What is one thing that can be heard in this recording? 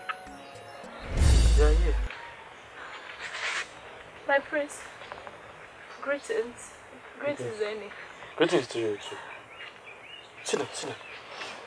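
A young woman speaks with alarm, close by.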